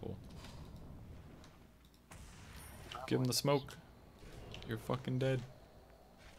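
Video game spell effects crackle and whoosh.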